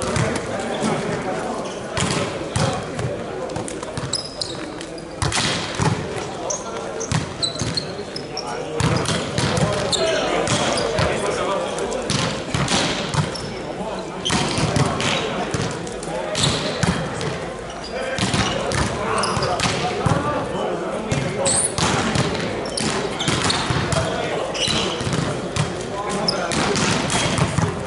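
A volleyball is struck with sharp slaps, again and again.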